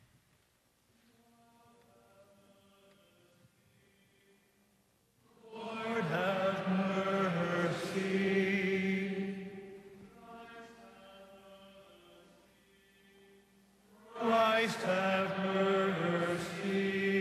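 A choir of men and women sings a slow chant in a large echoing hall.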